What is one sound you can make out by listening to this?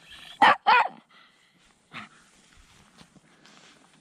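A blanket rustles as a hand pulls it off a small dog.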